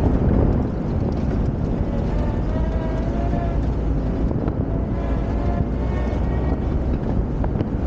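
Wind buffets loudly in an open vehicle.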